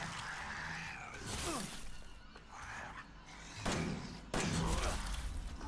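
A monster growls and snarls close by.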